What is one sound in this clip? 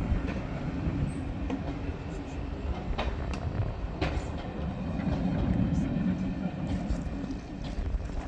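Train wheels clack over rail joints.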